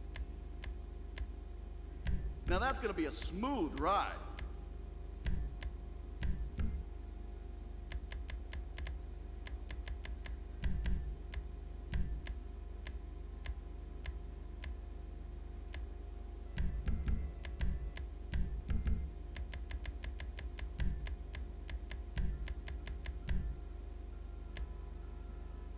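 Short menu clicks tick quickly, one after another.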